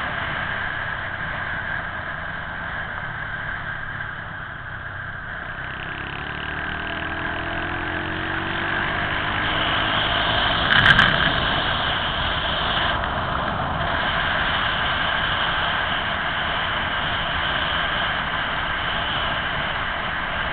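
A vehicle's engine hums steadily as it drives along the road.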